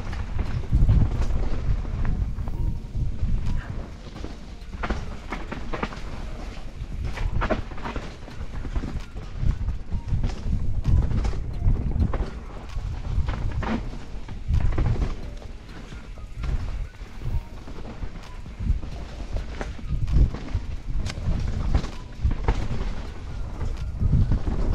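Wind rushes past a helmet microphone.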